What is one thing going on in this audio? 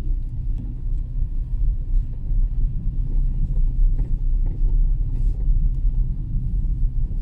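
A car rumbles steadily along a road, heard from inside.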